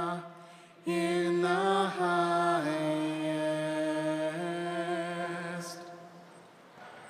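A choir of men sings a slow, sustained chant in a large echoing room.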